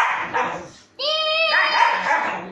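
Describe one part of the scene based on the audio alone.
A dog gives a high, whining yelp.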